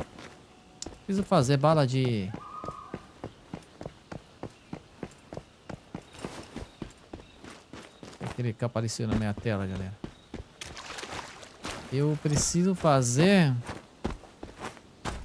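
Footsteps run quickly over soft ground.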